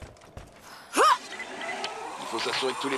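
A rope creaks and whirs as a woman slides down a zip line.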